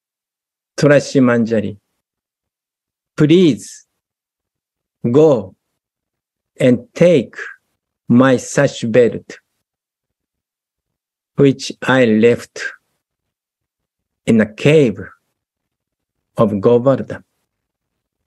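A middle-aged man speaks calmly in short phrases over an online call, with pauses between them.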